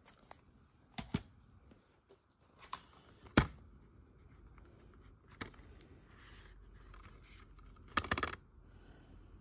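A plastic case clicks and taps as hands handle it.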